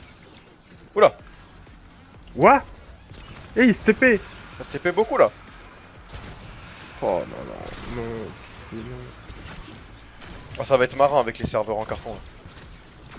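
Arrows whoosh and twang from a bow in rapid shots.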